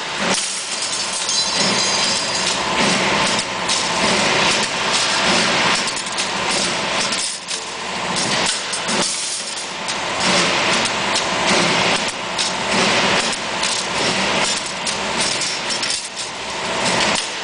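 A machine whirs loudly as it bends steel wire.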